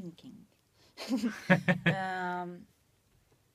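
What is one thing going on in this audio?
A woman laughs out loud.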